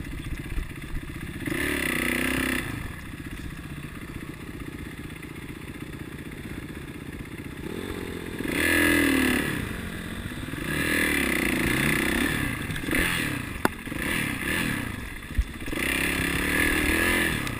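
A dirt bike engine idles and revs up and down close by.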